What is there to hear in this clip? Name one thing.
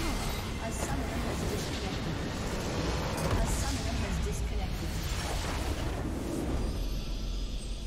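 A large structure in a video game bursts apart with a deep rumbling blast.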